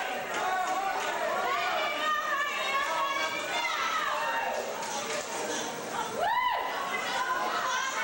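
Men shout and cheer loudly nearby.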